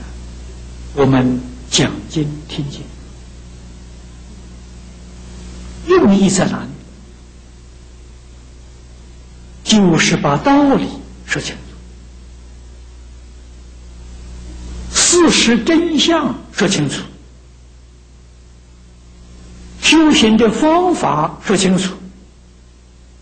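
An elderly man speaks calmly into a microphone in short phrases with long pauses.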